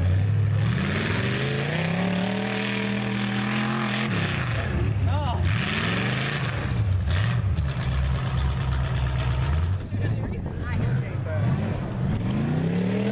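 A truck engine roars and revs up and down loudly.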